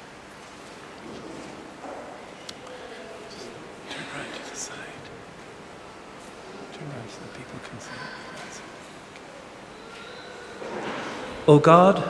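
A man speaks quietly at a distance in a large echoing hall.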